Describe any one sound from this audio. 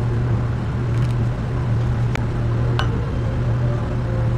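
Coffee pours into a cup with a soft trickle.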